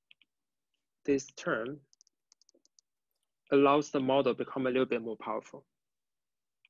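A young man speaks calmly into a close microphone, in short bursts with pauses.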